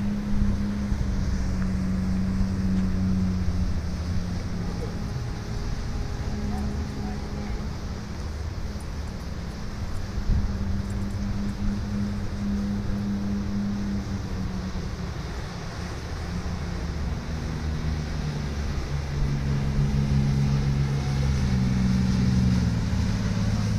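A boat engine drones steadily and grows louder as it nears.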